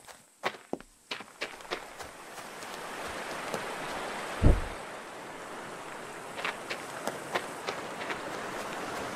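Footsteps tread over grass and gravel.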